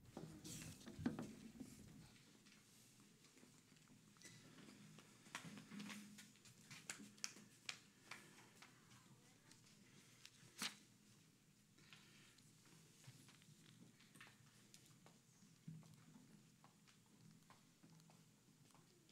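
A man speaks softly in a large room.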